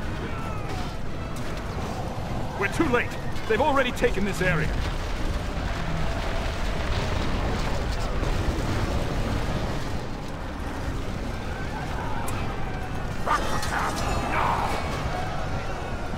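Weapons clash and clang in a large battle.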